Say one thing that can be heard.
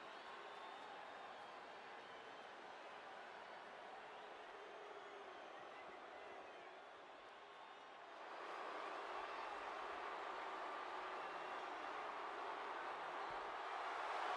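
A huge stadium crowd cheers and roars, swelling louder.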